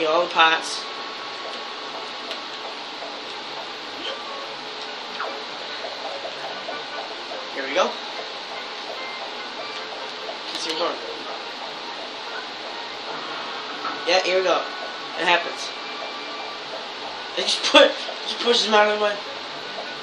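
Game music plays softly through a television speaker.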